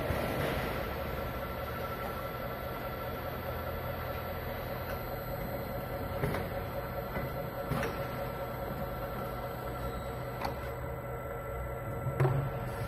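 A filling machine hums steadily.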